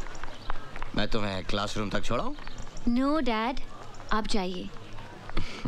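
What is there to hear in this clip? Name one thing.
A young woman speaks emotionally, close by.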